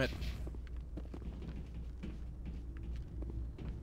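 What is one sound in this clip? Footsteps tap on a hard metal floor.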